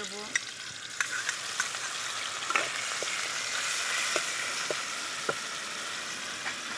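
Food sizzles loudly as it fries in hot oil.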